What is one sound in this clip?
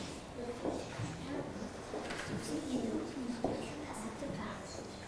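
Pencils scratch on paper.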